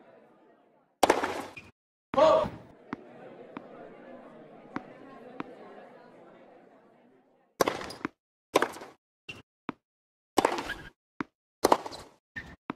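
A racket strikes a tennis ball with sharp pops.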